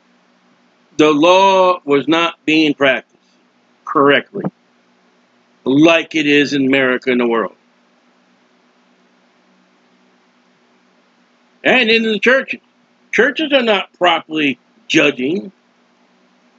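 A man speaks calmly and with pauses, close to a microphone.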